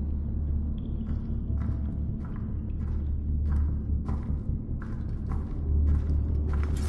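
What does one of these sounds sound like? Footsteps fall steadily on a stone floor.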